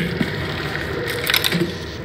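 Electric sparks crackle and fizz nearby.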